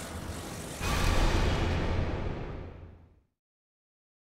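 A loud rumbling crash booms, then fades into silence.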